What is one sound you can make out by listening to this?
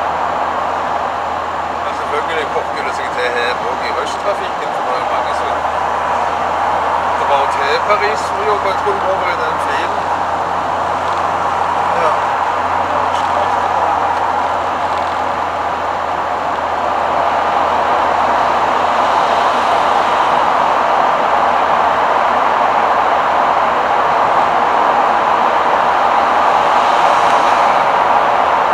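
A camper van's engine drones at motorway speed, heard from inside the cab.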